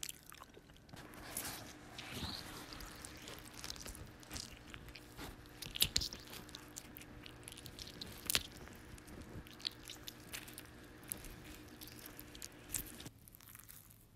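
Fruit rustles and knocks against a plastic tray.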